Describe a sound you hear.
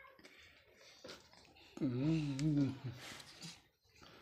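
A baby chews and smacks its lips up close.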